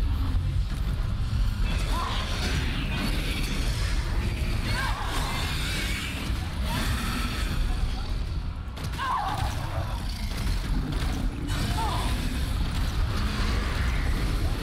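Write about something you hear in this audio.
A large creature roars and screeches.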